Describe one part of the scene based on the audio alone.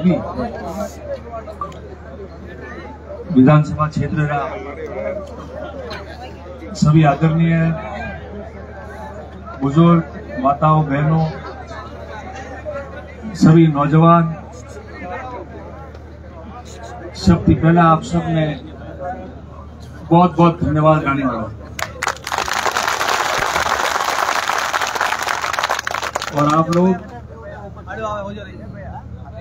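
A man shouts slogans in bursts through a loudspeaker.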